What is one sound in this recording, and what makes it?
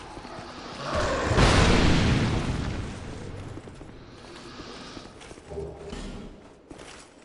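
A heavy sword slashes through the air and strikes with a loud crash.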